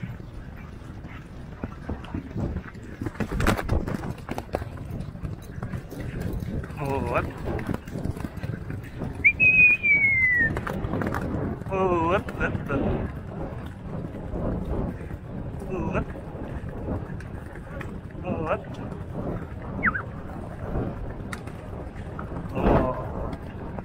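A horse snorts and breathes hard while galloping.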